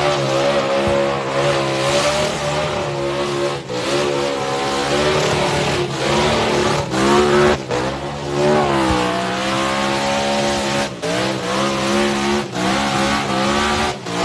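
Tyres screech and squeal on pavement.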